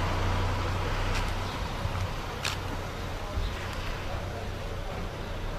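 A van's engine idles nearby with a low, steady rumble.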